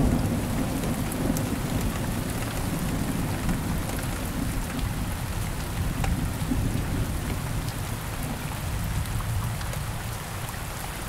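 Thunder rumbles deeply in the distance and slowly fades.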